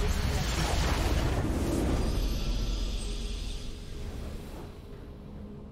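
A loud burst of triumphant game music and effects swells, then fades.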